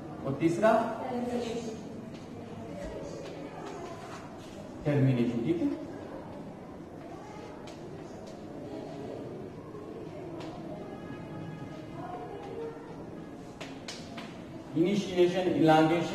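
A man speaks in a lecturing tone in a room with some echo.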